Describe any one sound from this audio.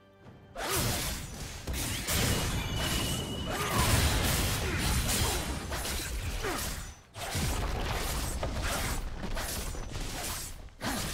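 Game spell effects whoosh and clash in a busy fight.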